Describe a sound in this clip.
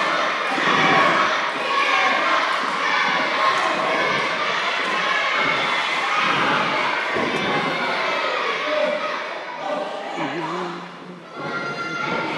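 A crowd of men and women chatter in a large echoing hall.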